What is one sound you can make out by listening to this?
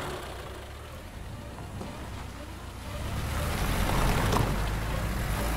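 A car engine hums as the car drives up a road and passes close by.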